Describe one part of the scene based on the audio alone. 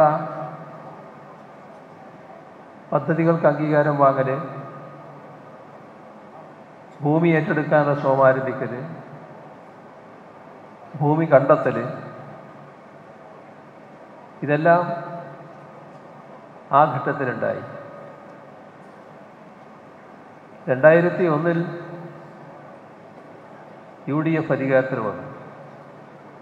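An elderly man speaks slowly and deliberately into a microphone, with long pauses, his voice ringing out over loudspeakers.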